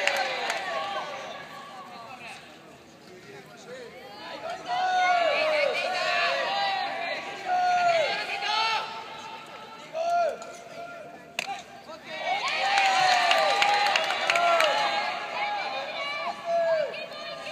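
Young men shout and call out across an open ballfield.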